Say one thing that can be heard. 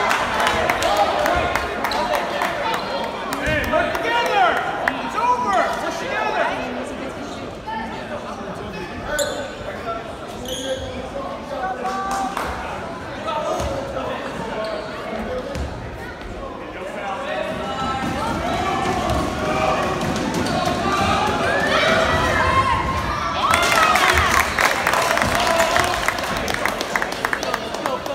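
Players and spectators call out in an echoing gym.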